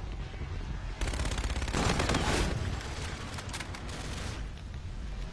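A gun fires rapid bursts.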